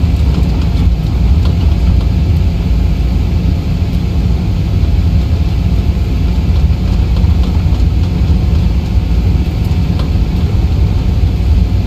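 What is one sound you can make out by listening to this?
Tyres rumble over a runway.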